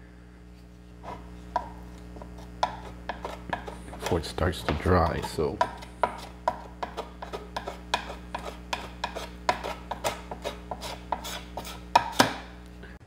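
A metal scraper scrapes paste across a metal panel in short strokes.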